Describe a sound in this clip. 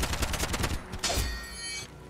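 Metal blades clash.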